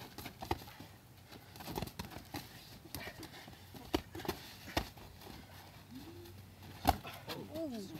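Boxing gloves thud in quick, sharp punches.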